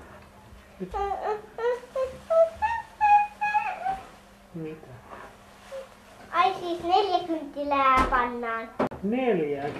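A young girl speaks in a high voice nearby.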